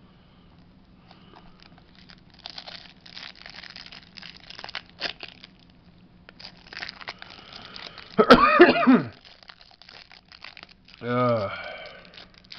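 A plastic wrapper crinkles and rustles close by.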